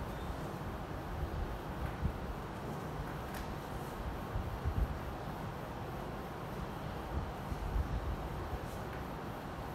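A felt eraser rubs across a whiteboard.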